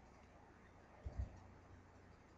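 A short soft sound effect plays as a card is placed.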